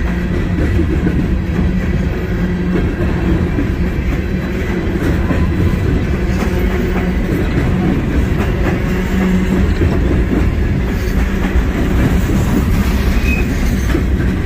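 A long freight train rumbles past close by.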